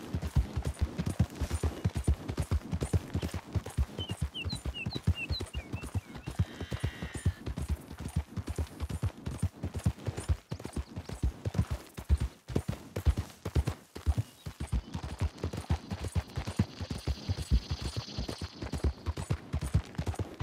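Horse hooves pound steadily on a dirt track at a gallop.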